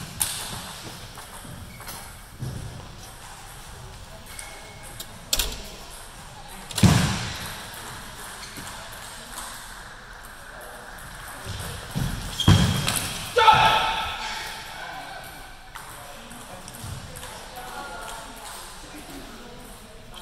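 A ball clicks against table tennis paddles and a table in a large echoing hall.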